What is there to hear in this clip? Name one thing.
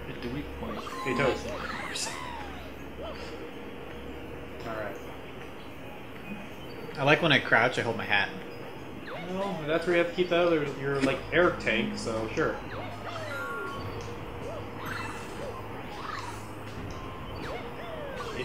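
Electronic video game sound effects chirp and jingle.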